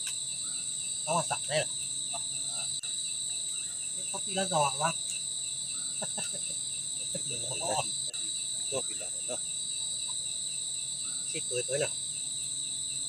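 Men talk in short bursts nearby, outdoors.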